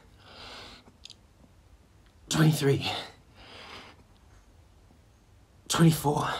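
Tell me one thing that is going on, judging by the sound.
A young man breathes hard.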